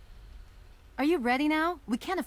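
A young woman speaks firmly and urgently, close by.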